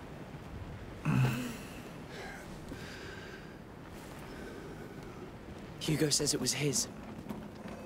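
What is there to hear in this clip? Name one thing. A middle-aged man speaks briefly into a close microphone.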